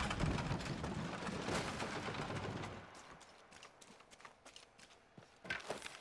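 Footsteps patter quickly over wooden planks.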